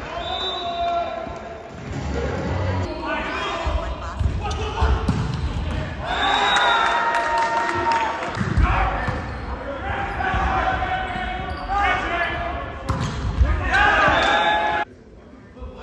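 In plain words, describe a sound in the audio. Players and spectators shout and cheer in a large echoing gym.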